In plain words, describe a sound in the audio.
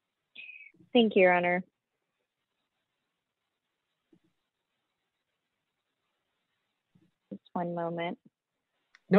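A woman speaks briefly and quietly over an online call.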